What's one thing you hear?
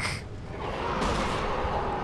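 A pistol fires a shot.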